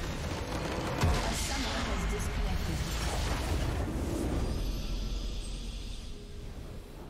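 A loud rumbling explosion bursts and crackles.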